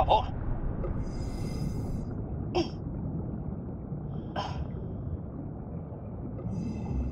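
Air hisses through a diving regulator in short bursts.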